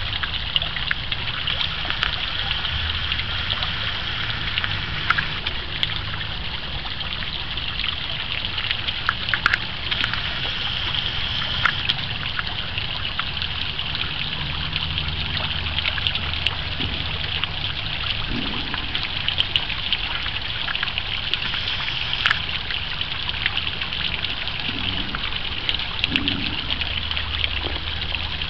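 A small fountain jet splashes into a pond.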